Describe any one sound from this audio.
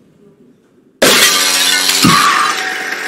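A body crashes down with a loud thud.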